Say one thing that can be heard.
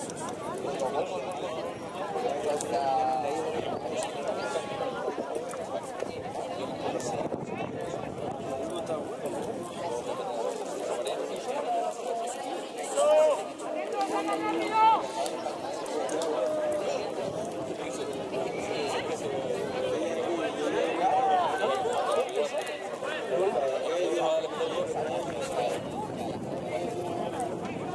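Young men shout and call to each other across an outdoor sports field.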